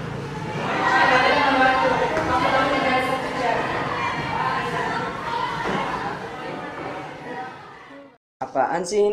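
Many young people talk and chatter at once in a room.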